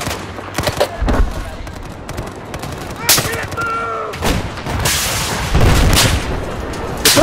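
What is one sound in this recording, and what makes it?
Explosions boom in the distance.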